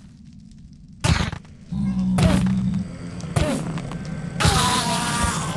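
Weapon blows land with sharp thuds.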